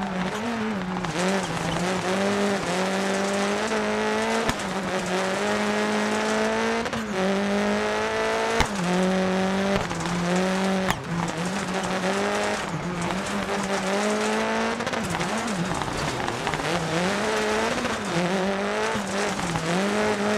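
A rally car engine revs hard, rising and dropping as it shifts gears.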